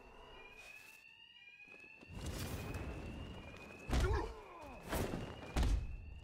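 Glass shatters and scatters.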